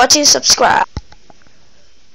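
A plastic toy blaster clicks sharply.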